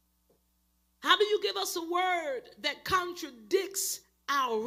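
A woman speaks with animation into a microphone, heard through a loudspeaker.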